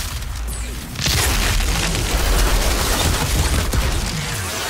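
An energy beam blasts with a harsh roar.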